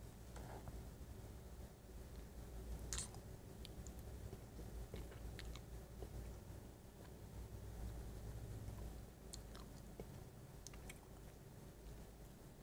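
A man whispers softly right into a microphone.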